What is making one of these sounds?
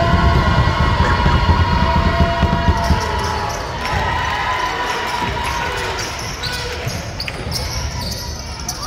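A crowd murmurs and calls out in an echoing gym.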